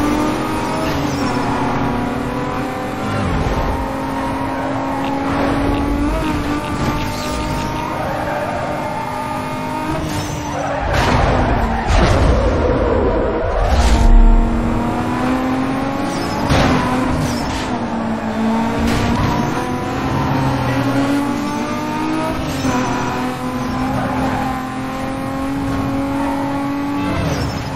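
A racing car engine roars at full throttle.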